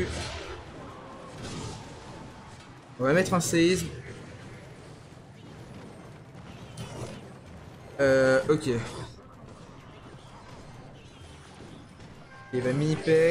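Cartoonish battle sounds clang and thump quietly.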